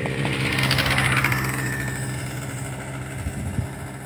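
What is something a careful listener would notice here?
A motorcycle engine hums as it rides along a road nearby.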